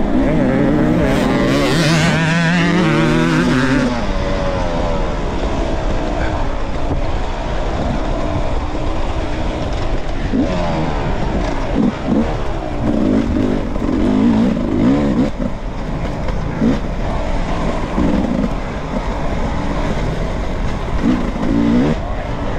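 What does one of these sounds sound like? Tyres crunch over loose dirt and stones.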